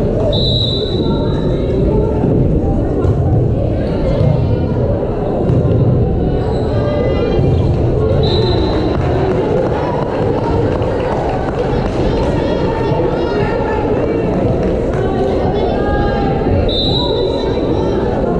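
A referee blows short whistle blasts.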